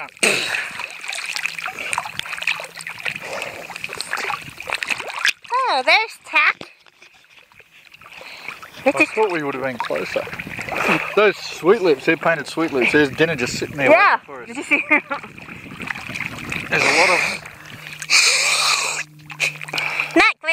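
Choppy water splashes and laps close by.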